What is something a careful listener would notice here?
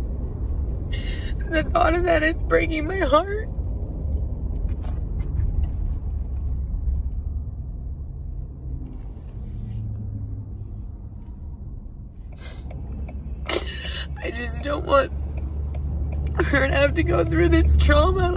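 A woman sobs and speaks in a shaky, tearful voice close by.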